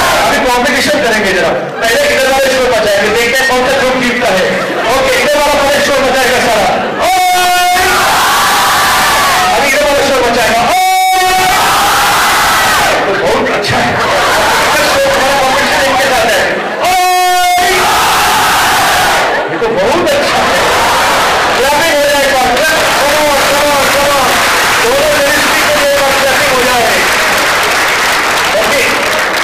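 A large crowd of young people laughs and cheers loudly in an echoing hall.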